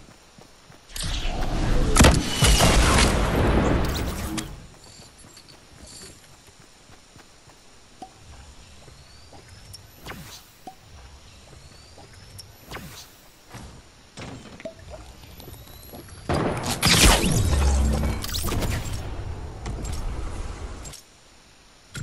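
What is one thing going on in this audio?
Gunshots crack and explosions boom in a video game.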